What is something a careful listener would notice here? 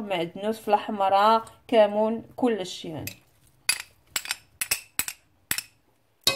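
Dry spices are tipped into a pot.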